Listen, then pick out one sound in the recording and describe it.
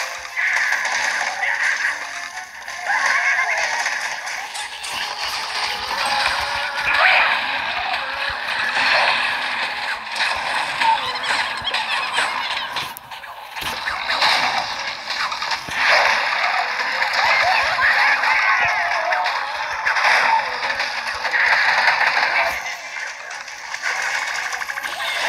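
Cartoonish game sound effects pop, splat and crunch rapidly.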